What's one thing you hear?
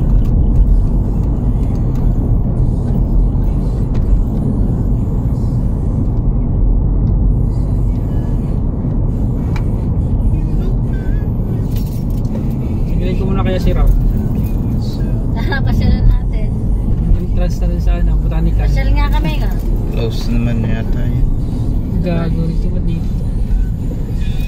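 A car engine hums steadily as tyres roll on the road.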